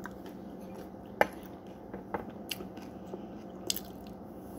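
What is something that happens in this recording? A metal spoon scrapes and clinks against a glass bowl.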